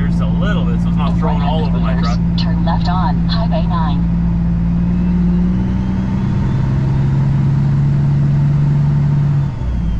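A truck engine drones steadily as the vehicle drives along a road.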